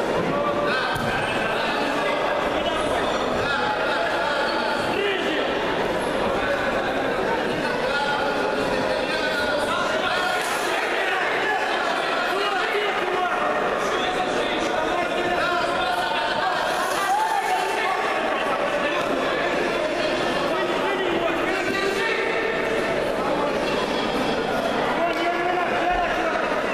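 A crowd of spectators chatters and shouts in a large echoing hall.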